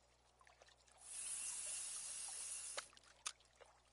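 A fishing line whizzes out as a lure is cast.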